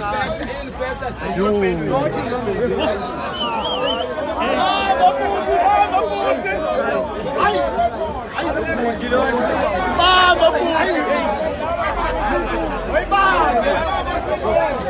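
A crowd of men and women talk and shout loudly all around, outdoors.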